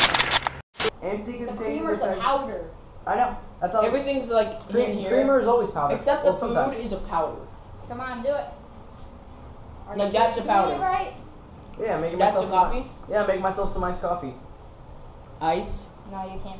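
Teenage boys talk with animation close by.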